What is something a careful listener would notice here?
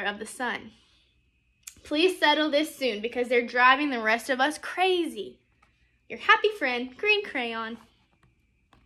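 A young woman reads aloud with animation, close by.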